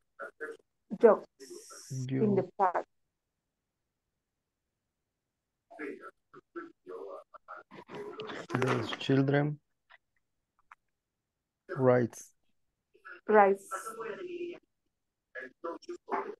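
A young man talks calmly over an online call, in short bursts with pauses.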